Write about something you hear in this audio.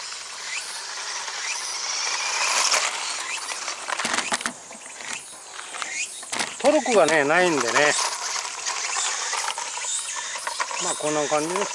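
A small electric toy car motor whines and revs.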